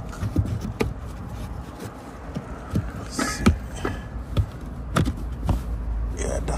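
A hand taps and presses on a plastic panel with light knocks.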